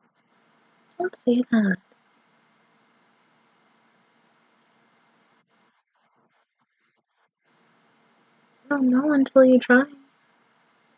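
A young woman speaks briefly and calmly, close to a microphone.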